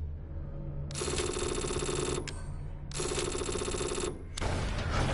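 A menu plays a pitched chiming tone, twice.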